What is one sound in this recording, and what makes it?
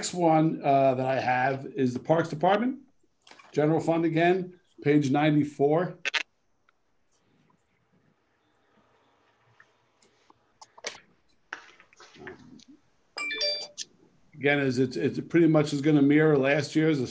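An older man speaks calmly over an online call.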